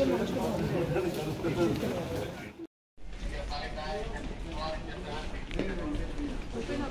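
Several men talk over one another nearby.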